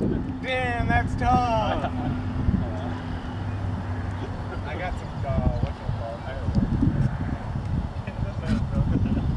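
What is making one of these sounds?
A young man speaks casually outdoors.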